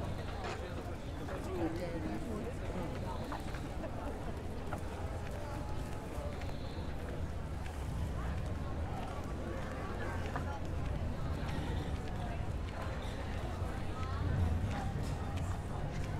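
Footsteps scuff on paving stones.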